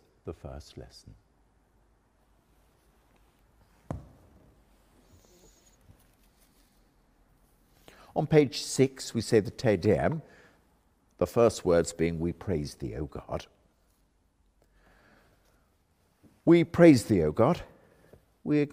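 An elderly man reads aloud calmly into a microphone, in a room with a slight echo.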